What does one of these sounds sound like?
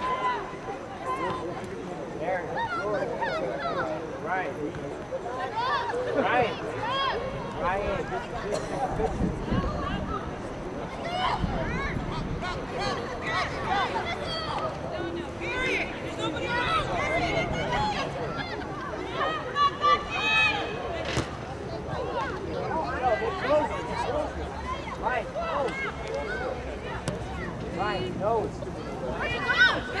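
Young women shout and call to each other across an open outdoor field.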